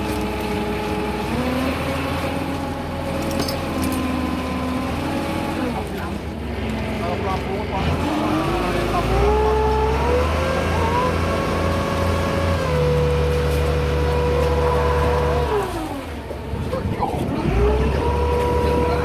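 A winch motor whirs loudly, its pitch rising and falling as it speeds up and slows down.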